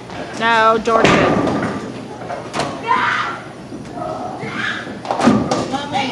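A bowling ball rolls down a lane with a low rumble.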